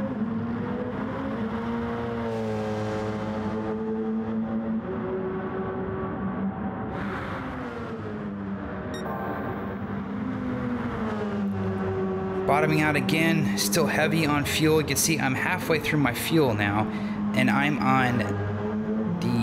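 A race car engine roars at high revs, rising and falling as gears change.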